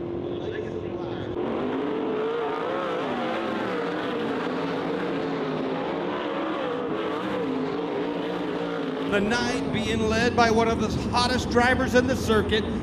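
Racing car engines roar and whine.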